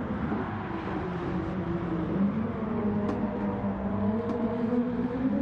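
A race car engine roars steadily at high revs, its pitch shifting up and down.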